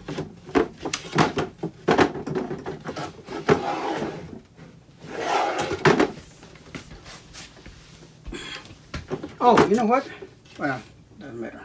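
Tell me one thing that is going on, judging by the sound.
A wooden drawer slides open and shut.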